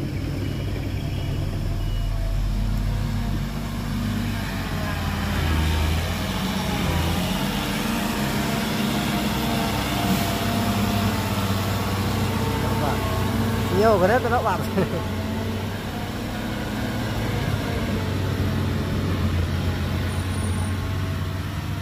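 A heavy truck engine rumbles steadily as the truck drives slowly over rough ground.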